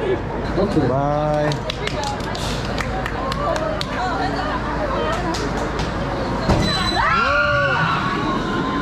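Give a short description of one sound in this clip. Young people on a ride cheer and shout excitedly nearby.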